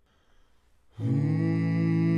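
Several men sing together in close harmony.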